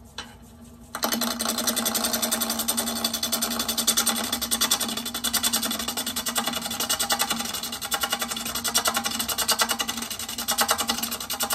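A wood lathe whirs loudly and steadily as it spins.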